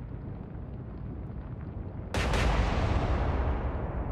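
A ship's hull rushes through churning water.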